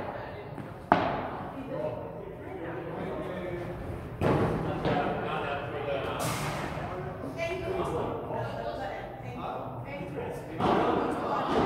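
Paddles strike a ball with sharp, echoing pops.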